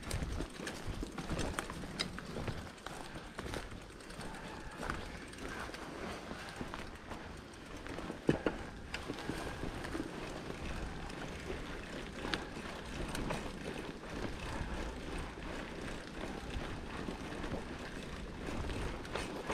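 A bicycle rattles and clunks over bumps.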